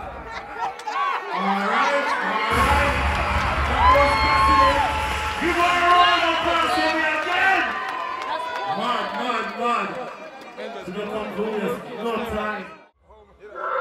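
A man talks loudly into a microphone, heard through loudspeakers.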